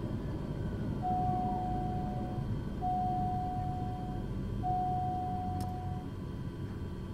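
An electronic warning tone beeps in repeated steady bursts.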